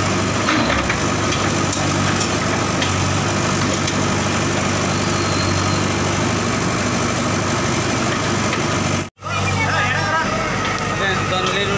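A diesel engine rumbles steadily.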